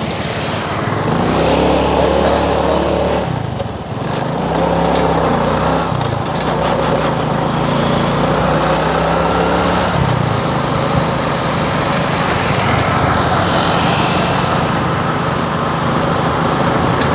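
A motorbike engine hums and changes pitch as it rides along.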